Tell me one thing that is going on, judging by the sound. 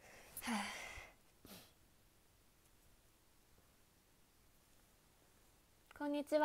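A young woman speaks brightly and playfully, close to the microphone.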